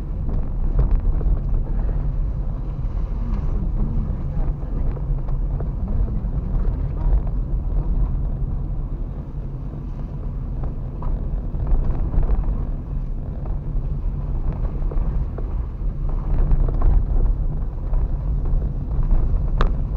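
Tyres crunch and rumble over a bumpy dirt road.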